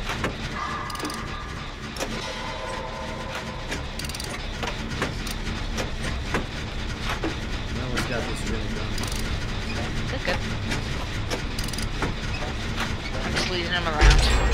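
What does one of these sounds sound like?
A machine clanks and rattles as it is repaired.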